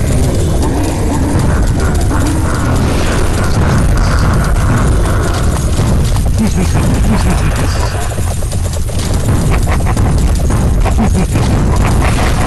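Game sound effects of zapping energy beams and clashing hits play rapidly throughout.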